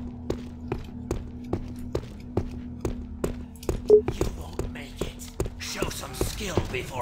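Footsteps tap steadily on a hard stone floor.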